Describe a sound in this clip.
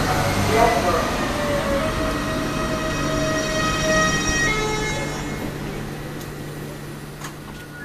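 A train's wheels clack on the rails.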